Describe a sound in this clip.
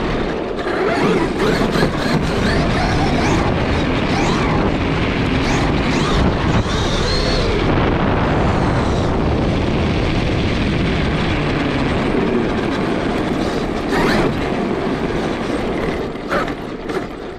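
Tyres rumble and rattle over cobblestones.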